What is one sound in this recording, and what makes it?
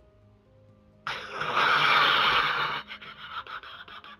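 A beast roars loudly.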